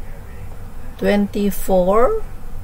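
A woman speaks briefly through a computer microphone.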